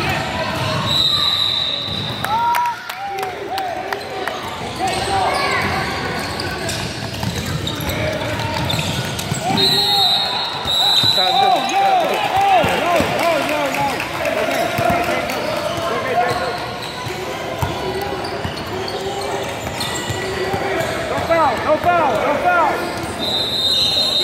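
A referee blows a whistle in short blasts.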